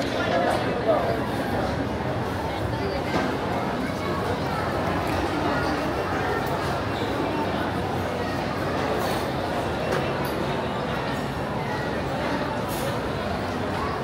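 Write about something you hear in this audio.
A crowd of people chatters in a busy indoor space.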